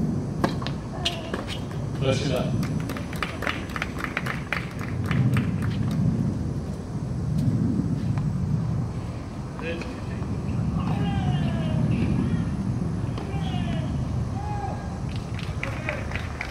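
A tennis ball bounces on a hard court, sometimes in a quick run of bounces.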